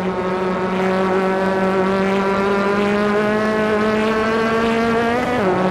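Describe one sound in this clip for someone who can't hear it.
A racing car engine drones at high revs, rising slowly in pitch, then drops sharply as the driver shifts gear.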